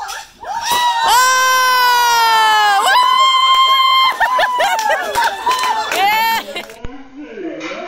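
A woman shrieks with excitement close by.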